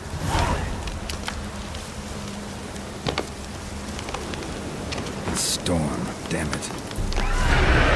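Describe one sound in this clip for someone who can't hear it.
Footsteps crunch on a path.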